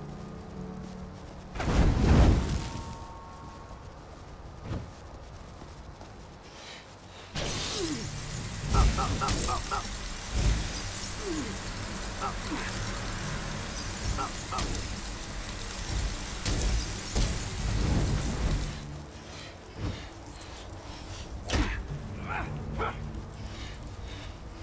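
Fire crackles steadily.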